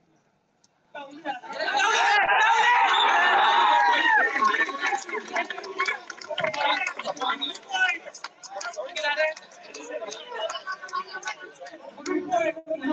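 A large crowd outdoors cheers and shouts loudly.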